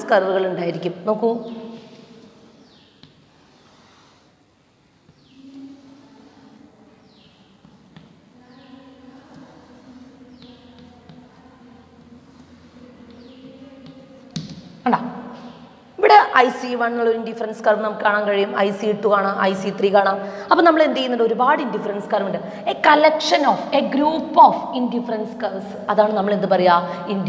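A young woman speaks calmly and clearly, as if teaching, close to a microphone.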